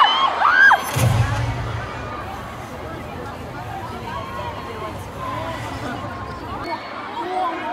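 A deep rumbling soundtrack booms through loudspeakers.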